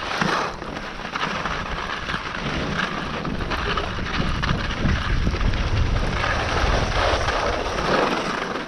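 Wind rushes and buffets outdoors.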